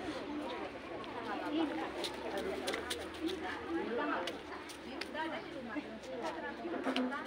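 Young children talk and chatter close by.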